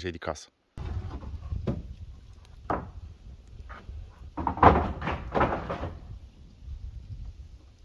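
A wood fire crackles softly.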